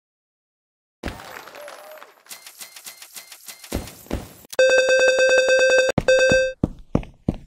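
A bright jingle and cheerful tinkling play in celebration.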